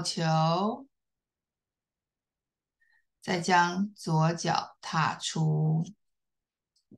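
A woman speaks calmly in short instructing phrases, heard through an online call.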